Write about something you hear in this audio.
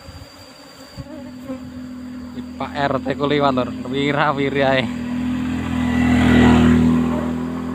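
A motorbike engine hums as it approaches and passes close by.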